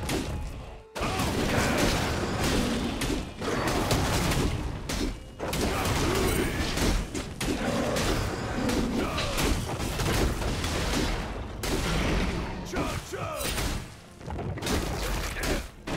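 Video game combat effects crackle, whoosh and clash.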